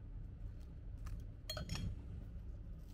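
A knife crunches through toast.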